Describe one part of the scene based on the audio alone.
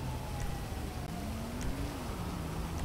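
A car engine idles and revs nearby.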